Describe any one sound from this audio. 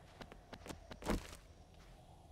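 A single gunshot cracks sharply.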